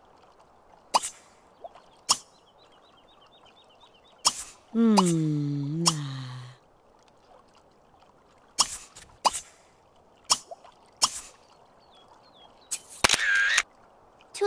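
Short clicks and pops sound as menus open and close.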